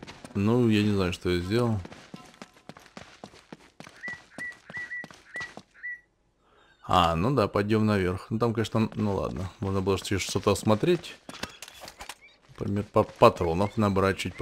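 Footsteps run over stone.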